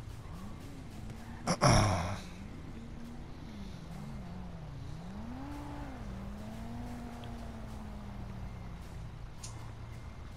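A car engine revs up and down nearby.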